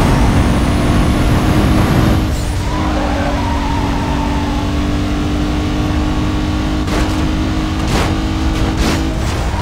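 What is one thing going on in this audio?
Tyres rumble over a rough road surface.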